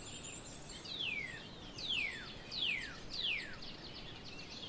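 Birds chirp with sharp falling whistles outdoors.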